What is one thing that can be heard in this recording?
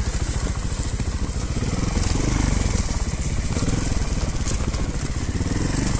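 A trials motorcycle engine putters close by at low speed.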